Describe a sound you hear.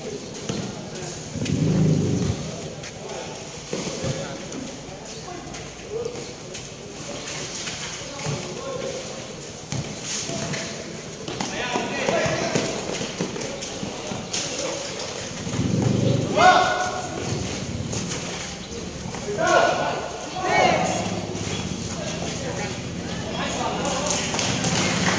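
A crowd of spectators chatters and cheers in an open hall.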